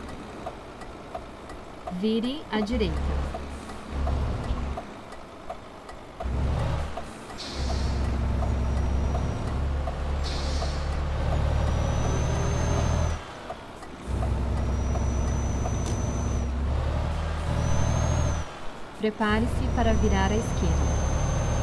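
A truck engine rumbles low and steady, dropping away for short moments.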